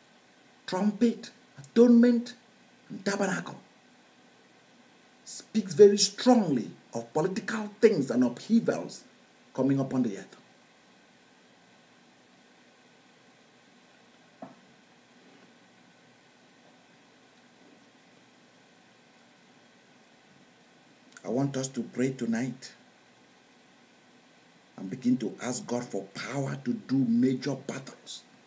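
A middle-aged man speaks forcefully and close by, with pauses.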